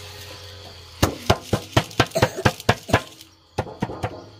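A metal sieve is knocked and tapped several times in quick succession.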